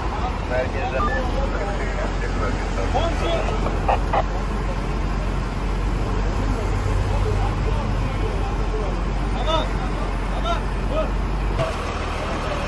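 Traffic rumbles past steadily on a road.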